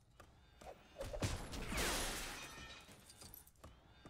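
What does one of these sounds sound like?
Small metal coins jingle and chime as a crate breaks apart.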